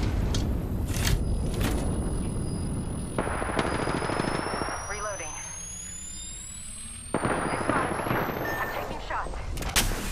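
An electronic device hums and whirs steadily as it charges up.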